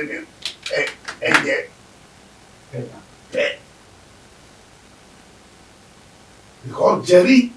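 An elderly man speaks calmly, close to a microphone.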